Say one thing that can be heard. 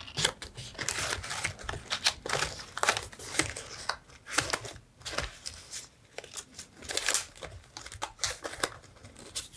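Paper rustles and crinkles as hands shuffle through a stack of paper pieces.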